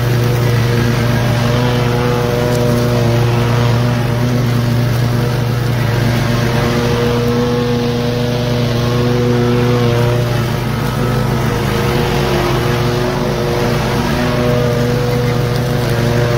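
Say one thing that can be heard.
Mower blades chop through brush and twigs.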